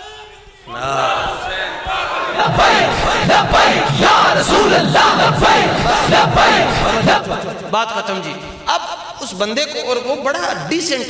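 A man speaks with animation through a loudspeaker.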